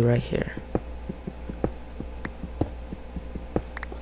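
A video game pickaxe taps on stone.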